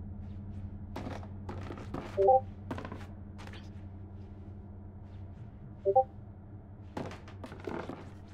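Small footsteps patter on wooden floorboards.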